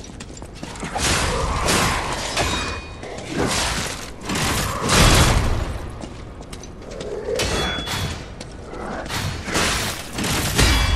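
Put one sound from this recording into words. Heavy blows thud against bodies.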